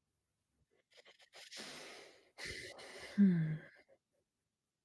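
A young woman speaks briefly and quietly into a microphone close by.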